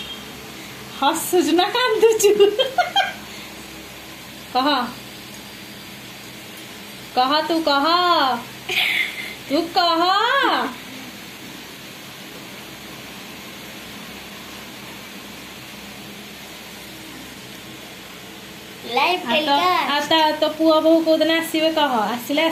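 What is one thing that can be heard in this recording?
A middle-aged woman speaks close by in a cheerful way.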